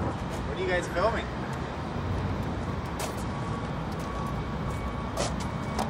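A man's footsteps tap on pavement outdoors.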